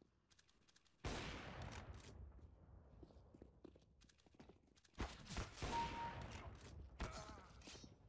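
A sniper rifle fires a loud, sharp shot.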